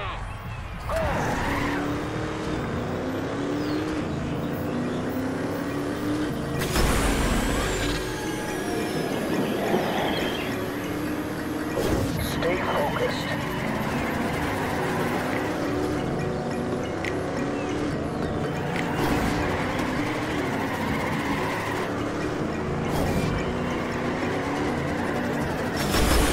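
A racing car engine roars loudly, revving up and down as gears shift.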